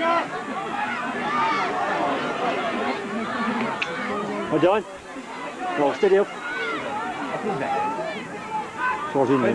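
Hurley sticks clack together as players tackle.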